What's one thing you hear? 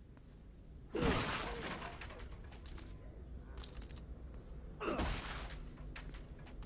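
Items are picked up from a wooden crate with a short rustle.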